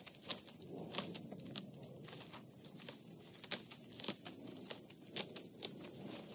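Leaves rustle and twigs snap close by.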